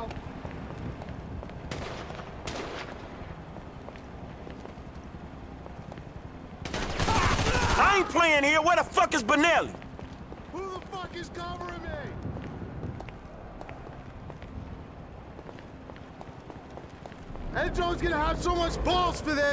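Footsteps run across a hard concrete floor.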